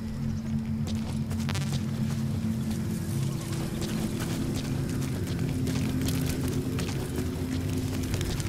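Footsteps run quickly over dirt and stone.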